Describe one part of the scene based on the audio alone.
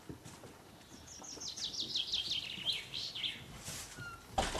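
Cocker spaniel puppies yelp in high-pitched bursts.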